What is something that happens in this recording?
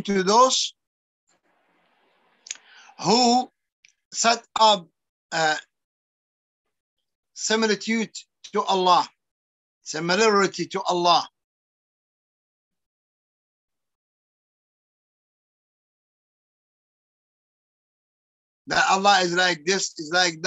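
An elderly man speaks with animation over an online call, in bursts with long pauses.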